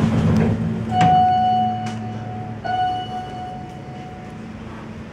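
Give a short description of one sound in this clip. An elevator chime rings.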